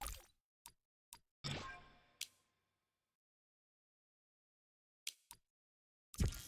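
Short electronic menu blips sound one after another.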